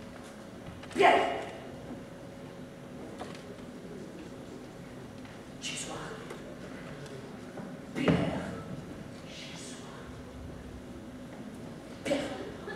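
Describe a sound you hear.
Bare feet thump and land on a wooden stage in an echoing hall.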